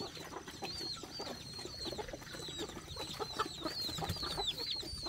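Pigs grunt and snuffle close by.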